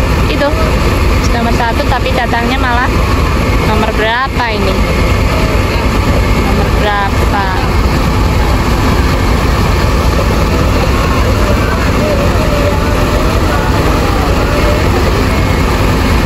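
Bus engines rumble steadily nearby.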